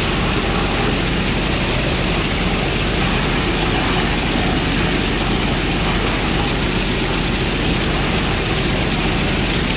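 Water gushes from a large pipe.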